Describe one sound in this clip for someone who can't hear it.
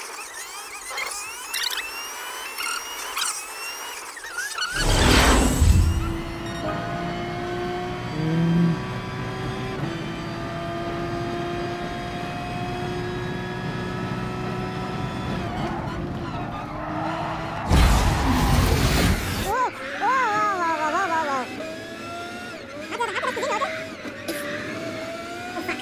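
A racing car engine roars, its pitch rising and falling as it shifts gears.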